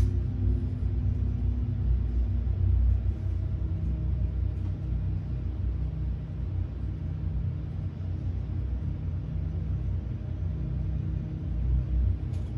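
Jet engines rumble low and steadily.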